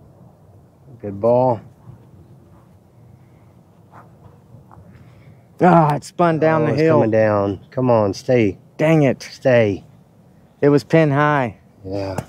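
A man talks close by, with animation.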